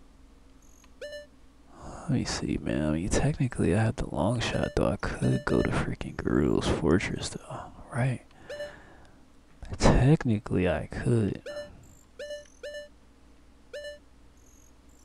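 A game menu cursor blips as it moves.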